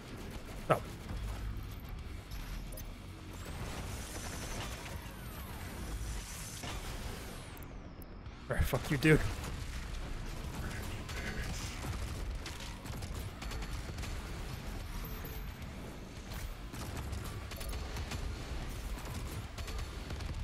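Guns fire rapidly with heavy booms and explosions.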